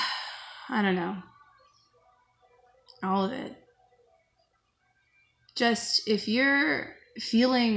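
A woman speaks close by, slowly and in short phrases.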